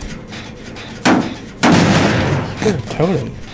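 A machine clanks and bursts with a loud metallic crash.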